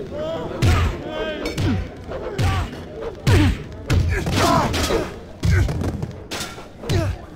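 Heavy punches land with dull thuds, again and again.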